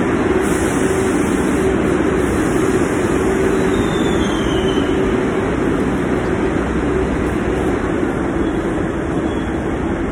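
A bus engine rumbles and hums steadily.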